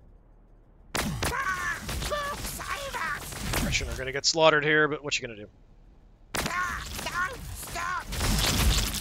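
Energy weapons fire in sharp zapping bursts.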